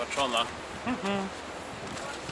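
A middle-aged man speaks close by.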